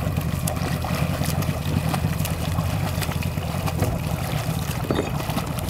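A swimmer's arms splash rhythmically through water.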